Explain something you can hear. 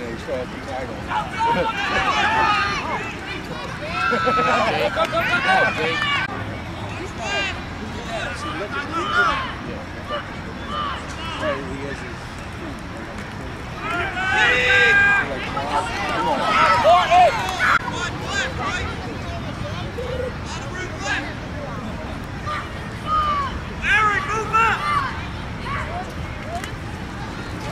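A crowd of adult spectators shouts and cheers outdoors.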